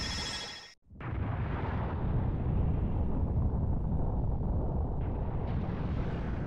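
A planet explodes with a deep booming roar.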